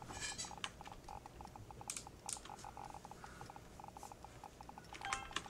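Short electronic game blips chirp rapidly and repeatedly.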